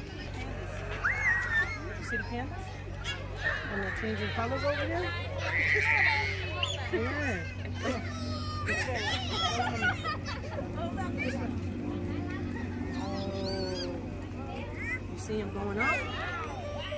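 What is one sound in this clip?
A young child babbles and squeals nearby.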